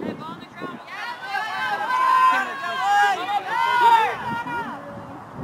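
Young women cheer and call out loudly.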